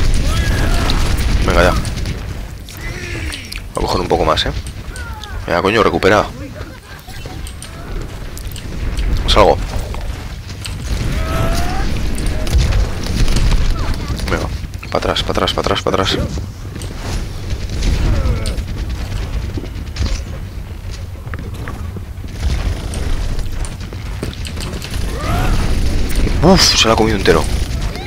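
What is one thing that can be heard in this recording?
Gunfire rattles and explosions boom in a video game.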